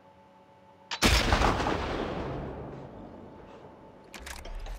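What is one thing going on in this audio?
A rifle fires a single loud shot that echoes and slowly fades.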